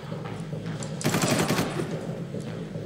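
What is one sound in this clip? A burst of gunfire rattles loudly.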